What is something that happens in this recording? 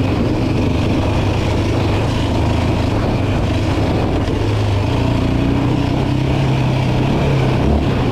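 A quad bike engine hums steadily and rises in pitch as it speeds up.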